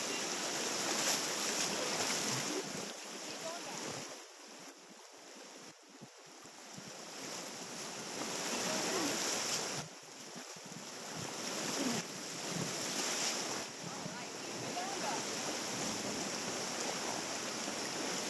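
River rapids rush and splash close by.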